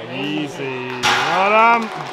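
A heavy barbell drops with a loud bang.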